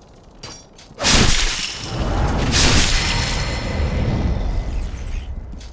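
A loud burst roars and crackles, then slowly fades.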